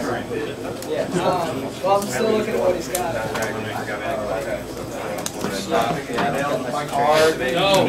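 Cards slap lightly onto a table.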